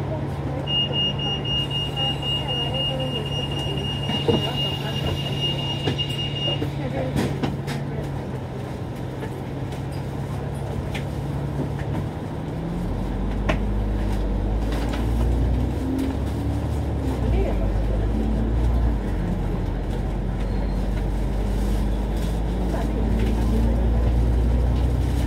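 A bus engine idles and then rumbles louder as the bus pulls away.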